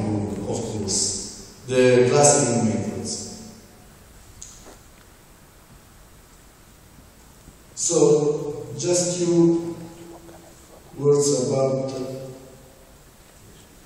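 A man speaks into a microphone in a large echoing hall, in bursts with pauses.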